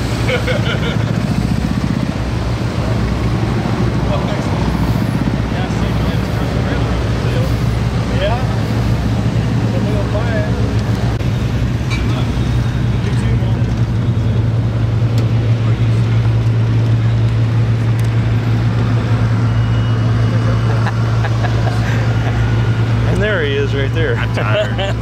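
A loud engine idles with a steady low rumble.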